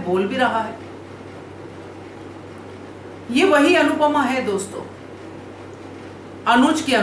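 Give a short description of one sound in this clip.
A middle-aged woman speaks calmly and close to a microphone, in short phrases with pauses.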